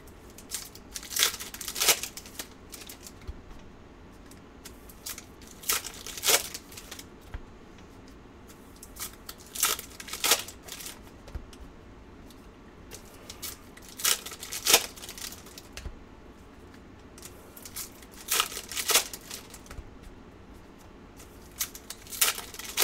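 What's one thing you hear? Foil card packs crinkle and tear open in bursts.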